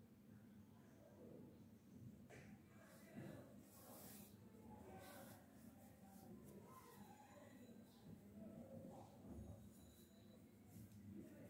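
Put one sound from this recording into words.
A middle-aged woman speaks softly, close by.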